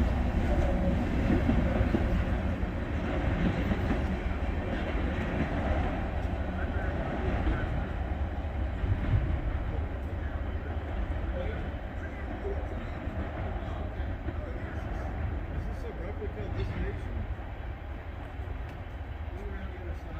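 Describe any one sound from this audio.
A train rumbles away into the distance, slowly fading.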